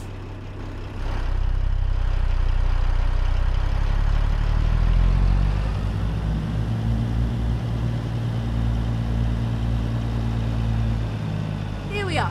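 A truck's engine revs louder and then settles back.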